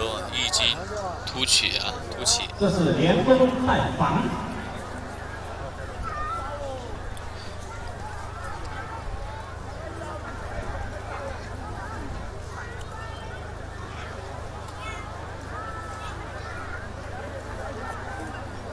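Hooves of water buffalo bulls scuff on dry dirt.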